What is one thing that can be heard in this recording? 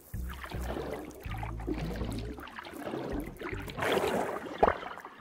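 Bubbles fizz and gurgle underwater.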